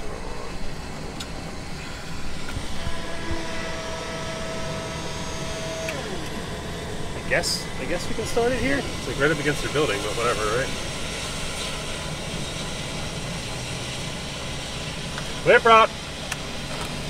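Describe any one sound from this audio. A small plane's engine rumbles steadily close by.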